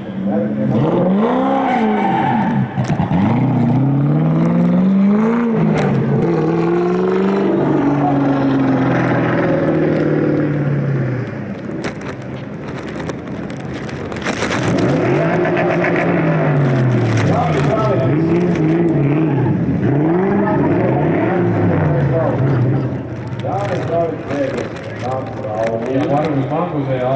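Tyres screech on the tarmac.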